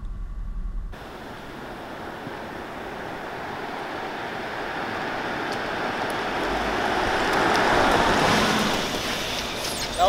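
A car approaches on asphalt and rolls past.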